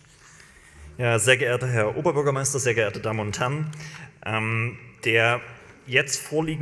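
A young man speaks through a microphone with a steady, formal delivery.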